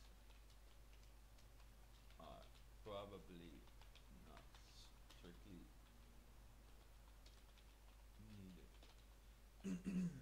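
Computer keys click as a man types.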